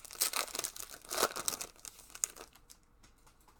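Cardboard packaging rustles and tears as a pack is opened.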